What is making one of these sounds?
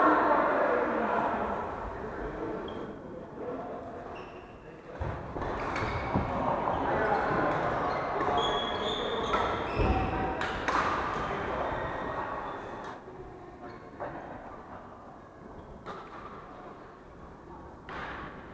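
Shoes squeak on a wooden court.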